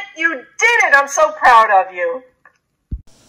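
A middle-aged woman speaks cheerfully through an online call.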